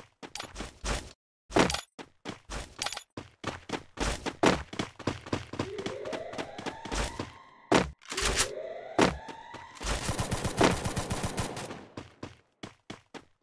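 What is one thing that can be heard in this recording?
Quick footsteps thud on wooden planks.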